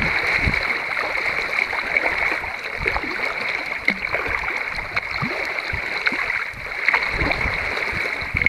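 Choppy water laps and splashes against a kayak.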